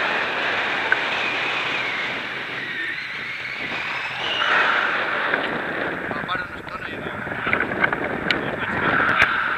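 Wind rushes loudly past the microphone outdoors.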